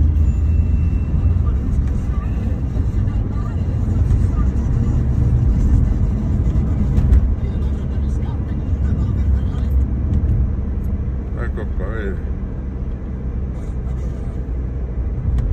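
A car engine rumbles low and steady from inside the cabin.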